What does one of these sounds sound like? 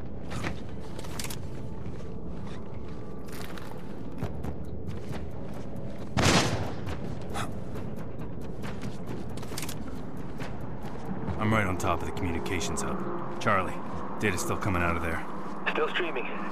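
Footsteps shuffle on a wooden floor and gravel.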